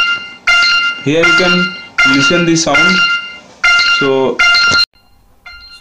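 A phone alarm rings loudly.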